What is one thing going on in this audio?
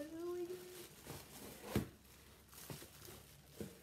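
Plastic bubble wrap crinkles and rustles.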